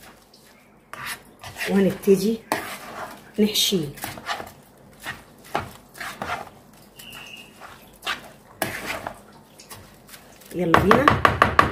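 A spoon stirs and scrapes through grains in a plastic bowl.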